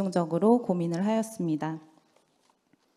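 A young woman speaks calmly into a microphone through a loudspeaker.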